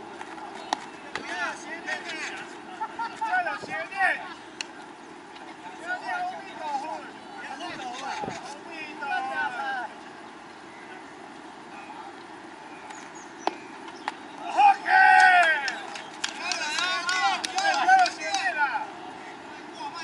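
Young men shout and call out across an open outdoor field.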